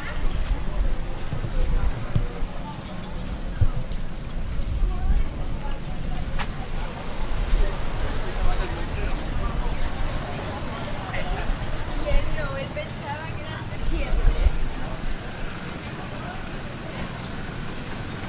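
Traffic rumbles along a busy street outdoors.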